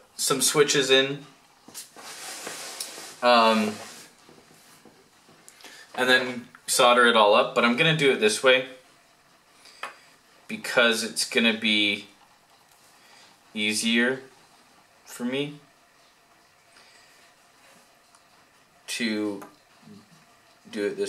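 A young man talks calmly close by, in short bursts with pauses.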